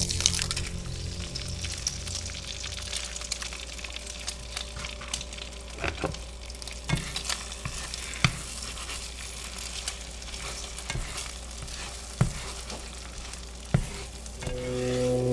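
An egg sizzles in a hot frying pan.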